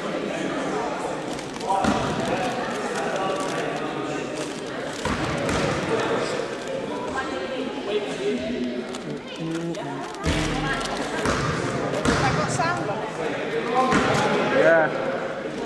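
Basketball sneakers squeak on a hard floor.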